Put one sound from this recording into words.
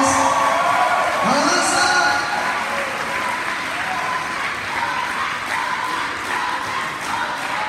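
A man sings through a loudspeaker.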